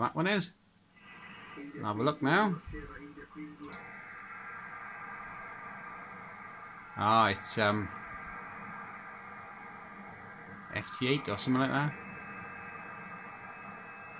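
A radio receiver gives off a steady buzzing hum through a loudspeaker.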